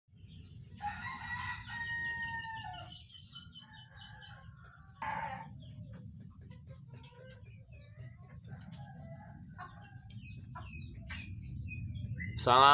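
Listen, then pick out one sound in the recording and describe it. A caged songbird sings varied whistling and chirping phrases close by.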